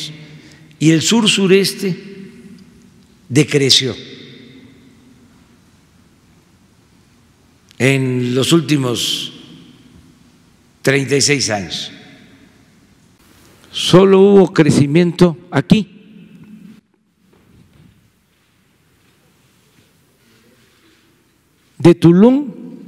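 An elderly man speaks calmly into a microphone in short bursts, echoing in a large room.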